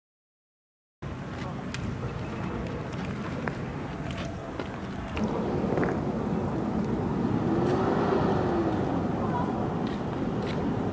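Firecrackers pop and crackle outdoors.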